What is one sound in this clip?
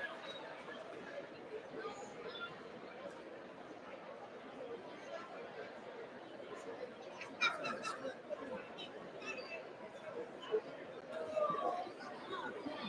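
A crowd of adults chatters in an echoing hall.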